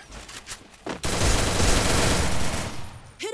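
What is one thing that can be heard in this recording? Rapid gunshots rattle in quick bursts.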